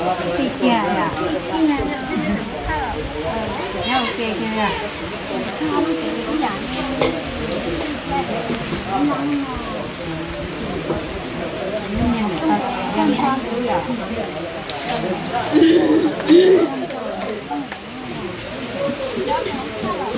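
Women talk and chat cheerfully close by.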